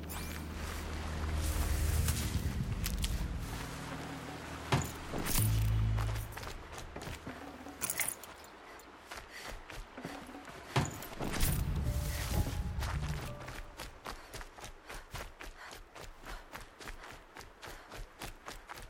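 Footsteps crunch through brush and snow.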